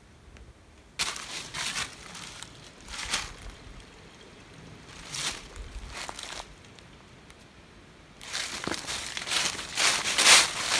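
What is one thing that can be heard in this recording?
Dry leaves crunch underfoot in bursts.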